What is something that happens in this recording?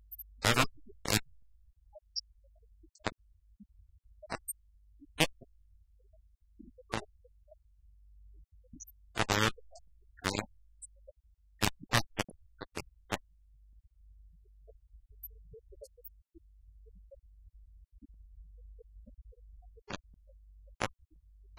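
Laptop keys click now and then in a quiet room.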